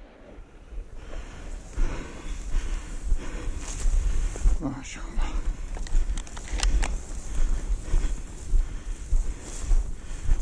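Dry grass rustles and swishes underfoot.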